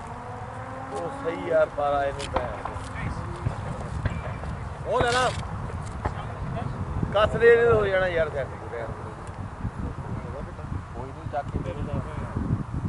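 Two men talk calmly to each other outdoors, some distance away.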